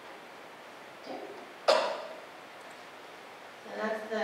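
A young woman speaks briefly and calmly into a microphone.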